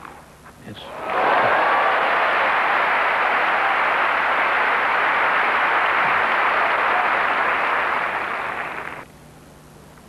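A large crowd applauds loudly.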